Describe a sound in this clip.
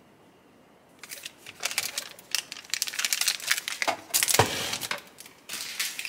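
Plastic packaging rustles and crinkles in a hand.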